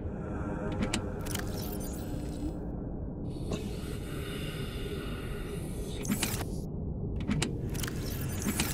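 A deep underwater rumble hums steadily.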